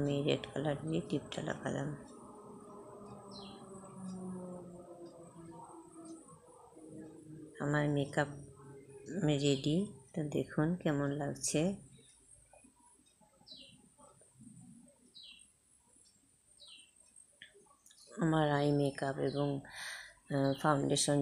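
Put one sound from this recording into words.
A middle-aged woman speaks close by, in a lively way.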